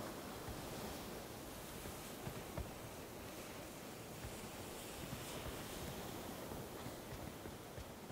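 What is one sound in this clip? A smoke grenade hisses steadily.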